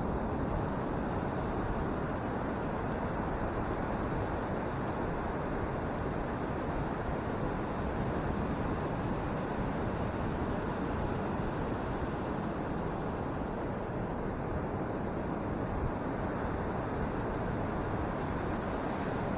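Ocean waves break and wash steadily onto a beach.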